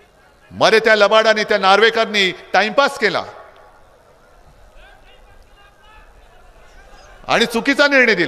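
A man speaks forcefully into a microphone, heard through loudspeakers.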